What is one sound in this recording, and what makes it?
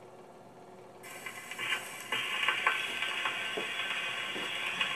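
A needle crackles and hisses on a spinning gramophone record.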